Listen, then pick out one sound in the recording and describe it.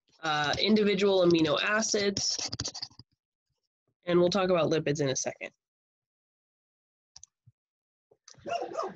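A woman speaks calmly into a microphone, explaining in short bursts with pauses.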